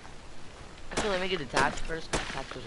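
A hatchet chops into a tree trunk.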